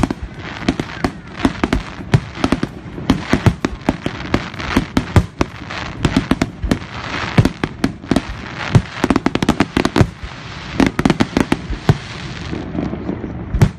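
Fireworks crackle and sizzle in a steady hiss.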